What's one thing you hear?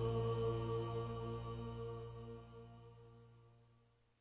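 Low, droning music plays and slowly fades out.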